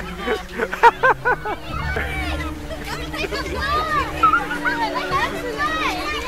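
Children chatter and shout excitedly nearby.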